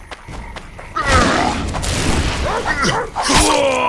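A burst of flame roars with a loud whoosh.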